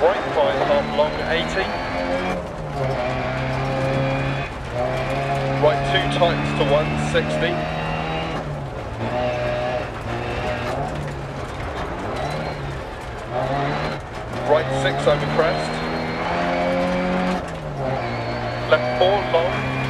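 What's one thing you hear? A car engine revs hard, rising and dropping in pitch as gears change.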